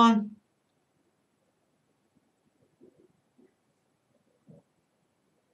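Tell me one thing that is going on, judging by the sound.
A young man speaks briefly and quietly into a close microphone.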